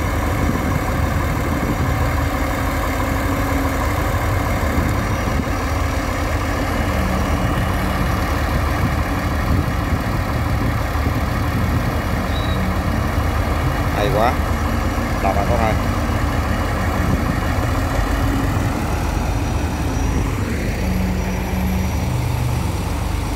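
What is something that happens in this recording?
A diesel pump engine drones steadily nearby.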